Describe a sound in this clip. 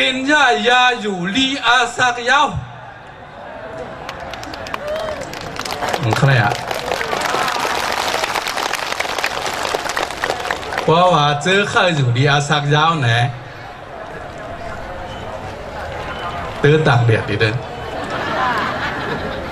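A man speaks with animation through a loudspeaker outdoors.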